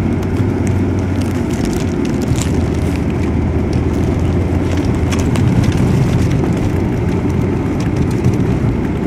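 A car engine runs, heard from inside the cabin.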